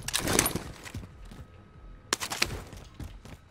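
Gunshots fire in quick bursts, loud and sharp.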